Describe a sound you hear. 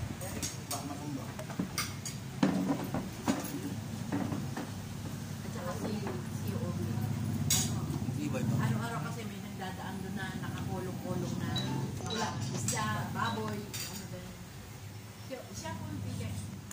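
Several elderly women chat and talk over one another close by.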